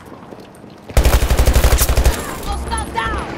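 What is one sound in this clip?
A rifle fires a rapid, loud burst of shots.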